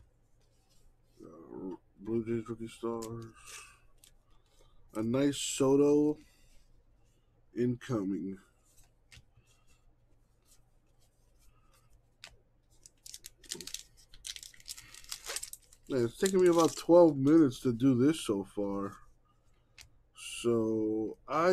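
Trading cards slide and shuffle against each other.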